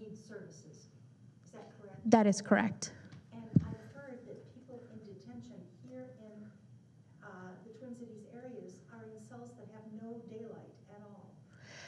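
A woman speaks calmly to a group in a room.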